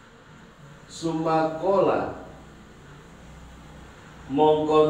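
An elderly man chants slowly into a microphone.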